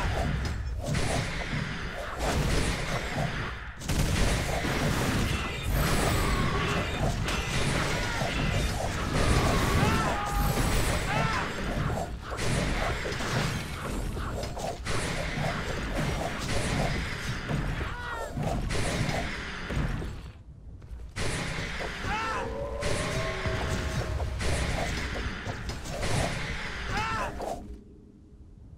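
Magic spells crackle and burst in a loud, chaotic battle.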